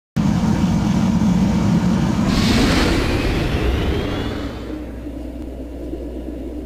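A spaceship engine roars loudly, then whooshes away and fades into the distance.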